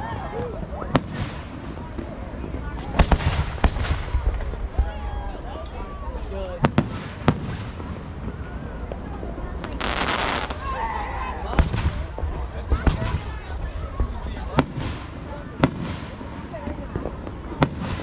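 Fireworks burst with sharp bangs, echoing outdoors.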